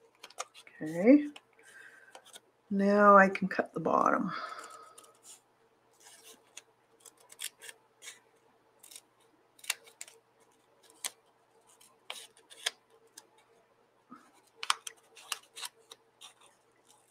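Stiff paper rustles and crinkles as it is handled.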